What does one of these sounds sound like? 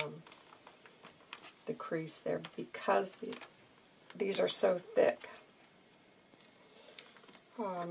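Card and paper pages rustle and rub softly as they are handled.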